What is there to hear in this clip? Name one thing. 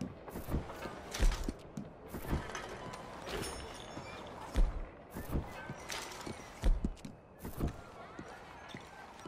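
Footsteps thud on stone at a walking pace.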